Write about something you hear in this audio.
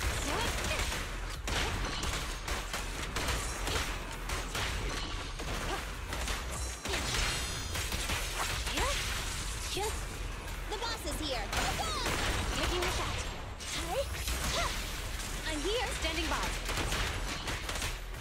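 Sword slashes and energy blasts crash and boom in quick succession.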